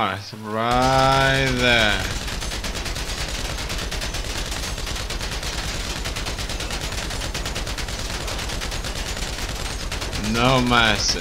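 An automatic rifle fires in a rapid, steady burst.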